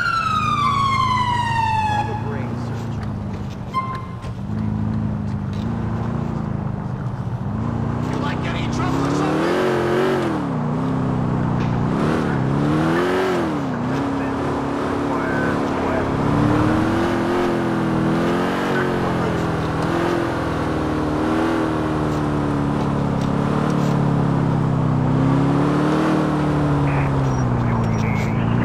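A car engine hums steadily and revs up and down as the car drives.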